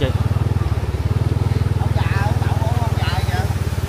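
People wade through water, splashing.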